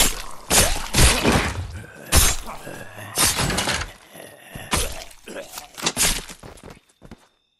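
Heavy blows thud and smack against a zombie.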